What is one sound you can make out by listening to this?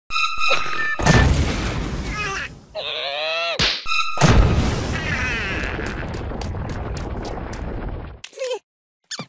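A fire bursts out and roars loudly.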